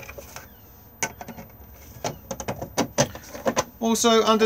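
A plastic lid clicks and knocks as it is pushed shut.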